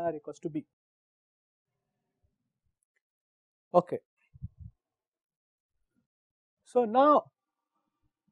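A man speaks calmly in short bursts through a microphone.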